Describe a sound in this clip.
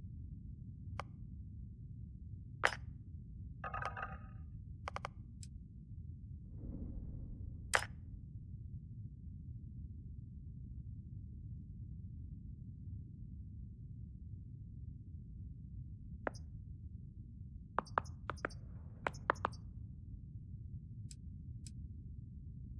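Soft interface clicks and beeps sound now and then.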